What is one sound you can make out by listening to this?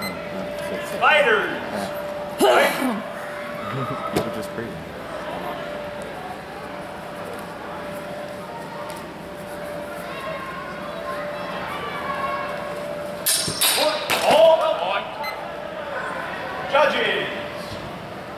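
Men shout loudly in a large echoing hall.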